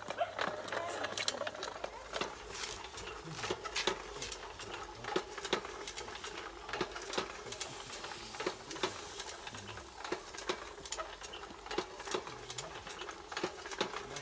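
Charcoal embers crackle and pop under grilling fish.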